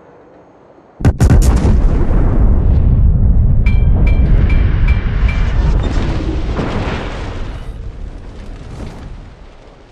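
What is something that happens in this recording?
Heavy shells explode and splash into the water around a battleship with a deep, rolling boom.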